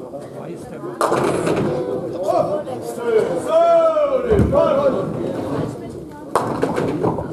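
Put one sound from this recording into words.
A heavy ball rumbles down a wooden lane in an echoing hall.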